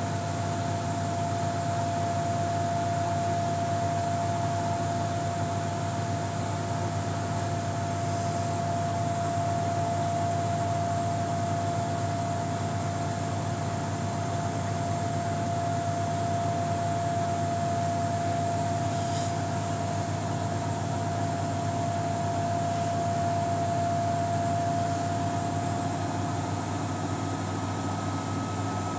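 A front-loading washing machine hums steadily during a wash.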